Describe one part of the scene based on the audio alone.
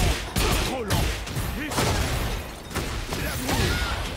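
Energy blasts whoosh and crackle in a fighting game.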